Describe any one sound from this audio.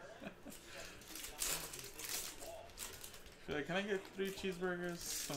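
Foil wrappers crinkle and tear as packs are opened.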